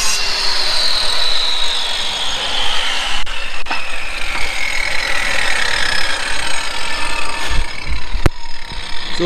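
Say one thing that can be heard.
An angle grinder whines and slowly spins down.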